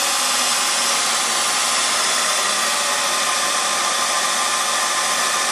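A lathe spindle spins at high speed with a steady whirring hum.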